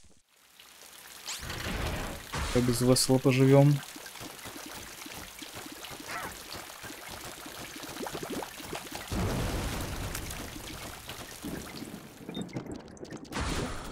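Small shots pop and splatter in quick succession in a video game.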